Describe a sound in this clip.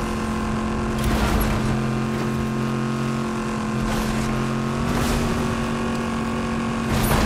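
A vehicle's booster roars in short bursts.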